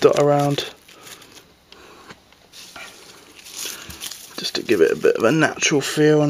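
Potting soil rustles and crumbles softly.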